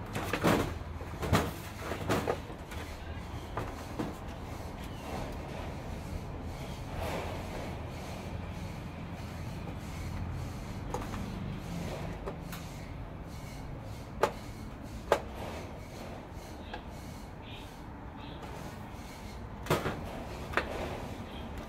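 Metal parts and tools clink and knock on a work surface.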